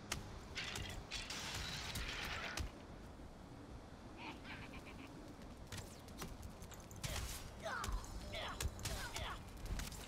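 Swords clash and strike in quick hits.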